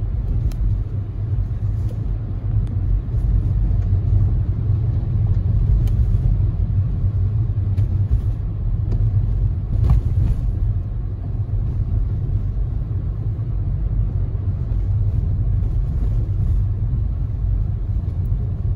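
Tyres rumble over a snowy road.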